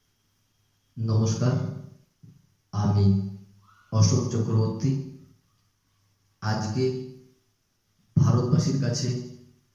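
A young man speaks calmly and clearly into a close microphone.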